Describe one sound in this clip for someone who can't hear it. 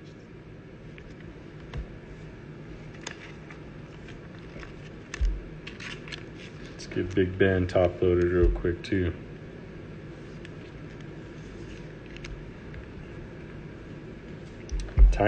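Cards in plastic sleeves rustle and click as hands handle them.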